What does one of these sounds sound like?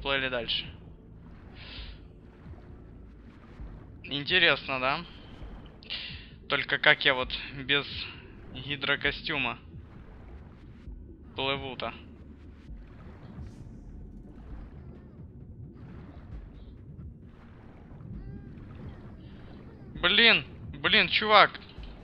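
Water swirls and gurgles as a swimmer strokes underwater.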